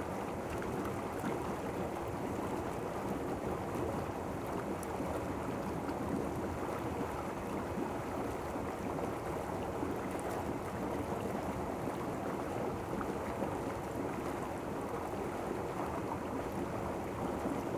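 Hot tub jets churn and bubble the water steadily, close by.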